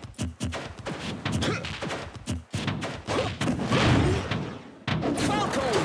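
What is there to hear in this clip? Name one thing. Video game punches and kicks land with sharp, rapid smacks.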